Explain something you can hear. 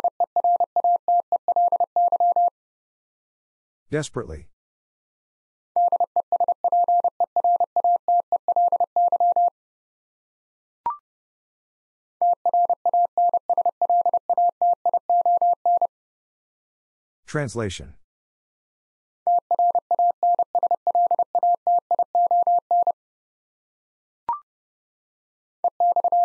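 Quick, high beeps of Morse code tap out in bursts.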